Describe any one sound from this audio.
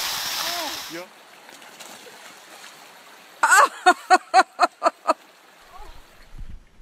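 A stream of water flows and gurgles.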